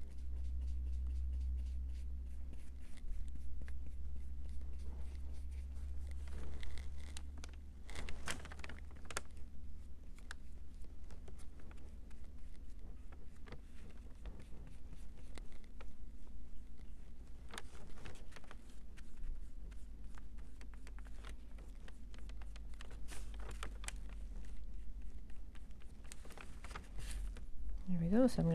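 Small craft pieces tap and click softly against a paper-covered table.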